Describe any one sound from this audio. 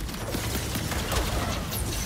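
A laser beam zaps with a sharp whine.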